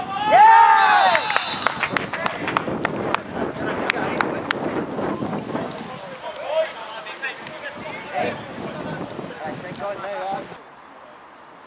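Young men shout excitedly as they celebrate.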